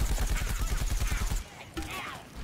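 A video game explosion booms.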